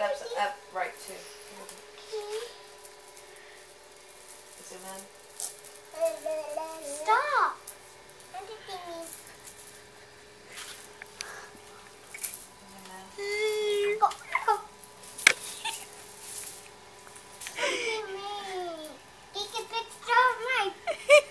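A baby squeals and giggles with delight close by.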